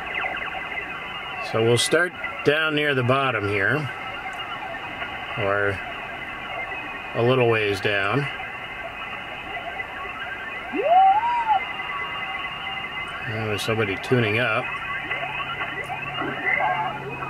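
A shortwave radio hisses steadily through a small loudspeaker.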